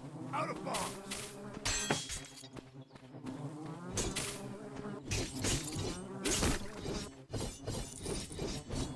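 Swords swish and clash in a fight.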